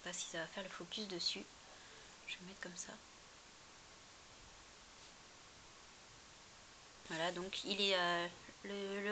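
A young woman talks close to a microphone, with a pause in the middle.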